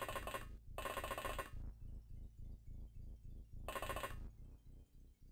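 A video game plays short, loud bursts of electronic sound effects.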